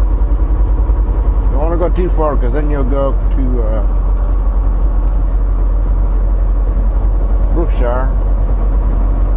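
A vehicle engine drones low and steady from inside the cab.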